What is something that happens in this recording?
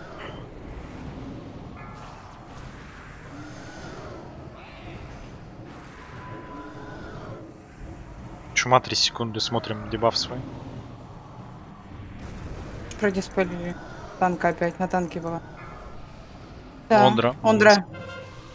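Magic spells and weapons clash in a fantasy battle.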